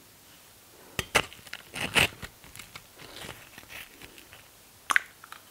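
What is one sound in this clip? Tortilla chips crunch and crackle as they are broken and picked up.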